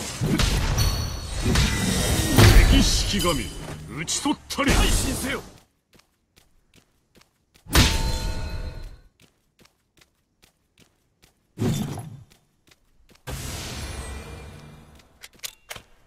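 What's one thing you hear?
Mobile video game combat sound effects clash and burst.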